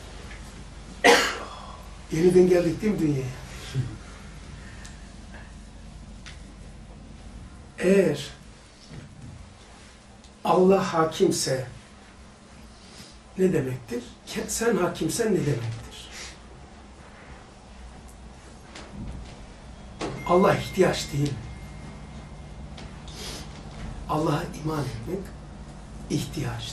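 An elderly man reads aloud slowly and calmly into a microphone, with long pauses.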